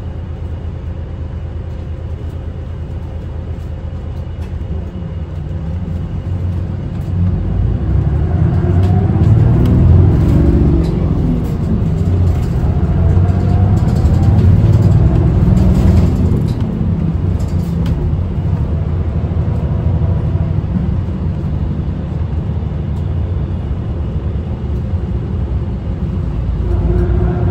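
A bus engine rumbles steadily, rising and falling as it pulls away and gathers speed.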